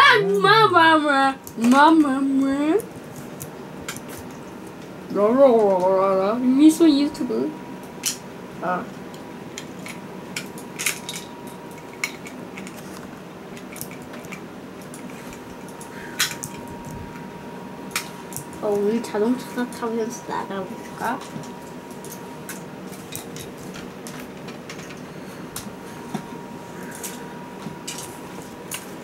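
Plastic toy parts click and clatter.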